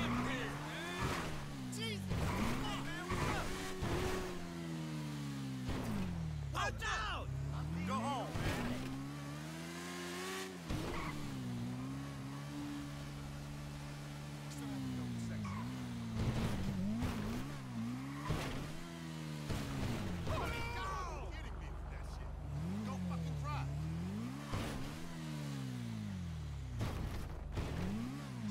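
A motorcycle engine revs up and down, rising and falling in pitch.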